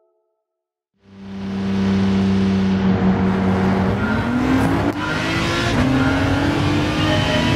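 A race car engine idles with a steady hum, then revs higher.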